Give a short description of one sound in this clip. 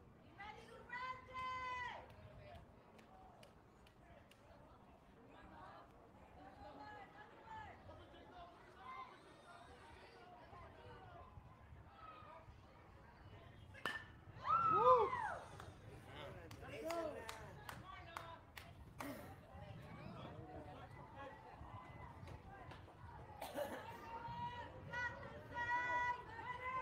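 Children shout and cheer outdoors.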